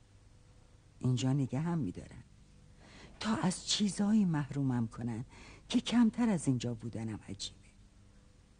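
An elderly woman speaks expressively, close by.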